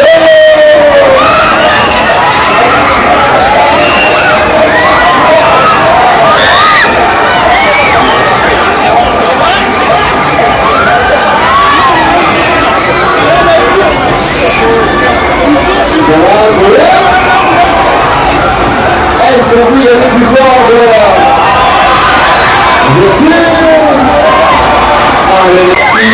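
A fairground ride whirls and rumbles loudly.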